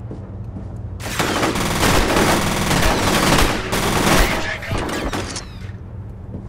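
Bullets strike and ricochet off hard surfaces.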